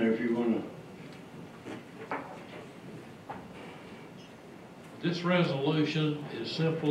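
An adult man speaks calmly through a microphone in a large room.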